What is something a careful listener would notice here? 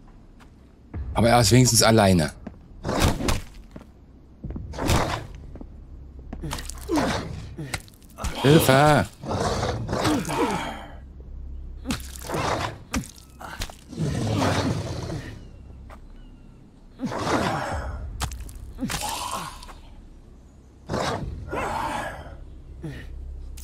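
Zombies growl and snarl loudly.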